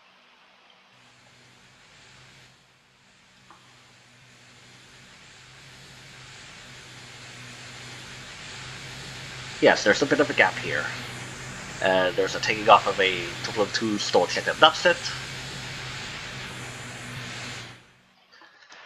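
A jet engine roars steadily and slowly grows louder.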